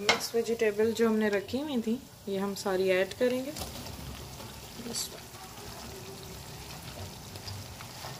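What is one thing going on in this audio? Chopped vegetables tumble into a pan.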